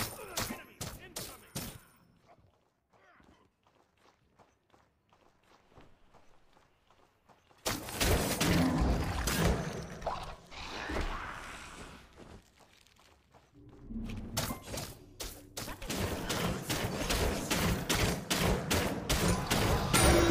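Sharp video game hit sounds and magic blasts clatter in quick bursts.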